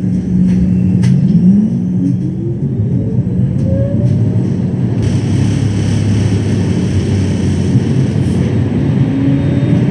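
A tram rumbles along its rails.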